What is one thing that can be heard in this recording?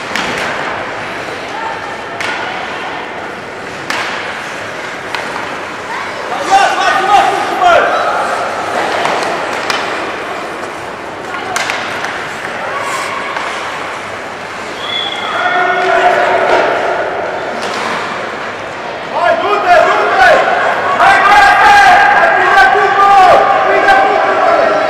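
Skates scrape and hiss across the ice in an echoing arena.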